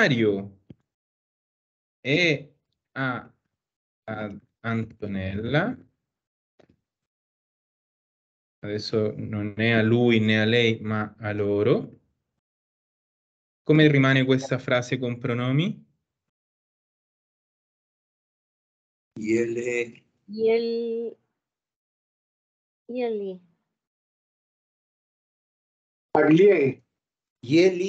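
A woman speaks calmly over an online call, with pauses.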